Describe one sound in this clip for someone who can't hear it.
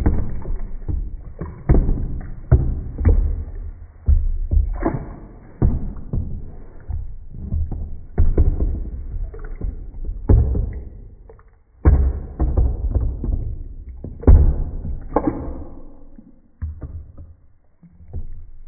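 Water splashes and sloshes in a tub.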